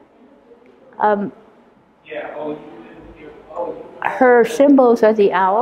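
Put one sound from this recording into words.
An elderly woman speaks calmly and thoughtfully, close to a microphone.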